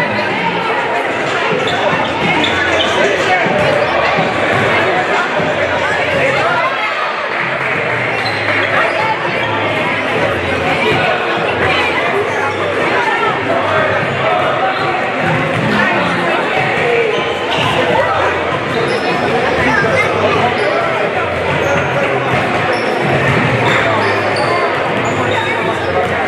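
A crowd of young people chatters loudly nearby.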